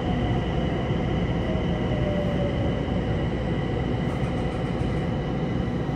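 A train's motor hums with a steady high whine.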